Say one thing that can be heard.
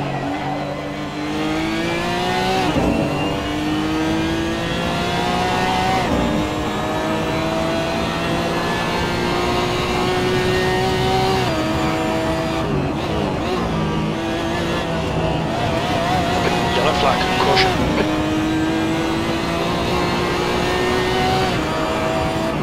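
A racing car engine roars and revs, rising through the gears and dropping sharply at each gear change.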